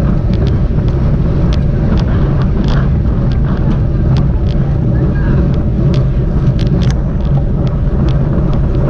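Bicycle tyres hum on the road.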